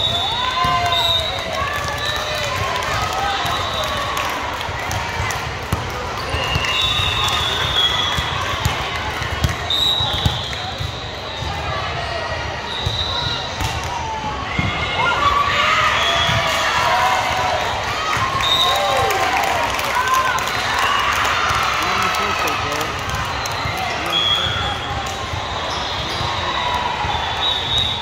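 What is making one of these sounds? Young women and girls chatter and call out across a large echoing gym.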